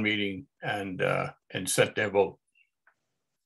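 An older man speaks calmly into a microphone over an online call.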